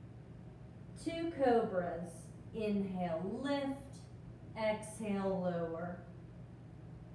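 A woman speaks calmly in an echoing room.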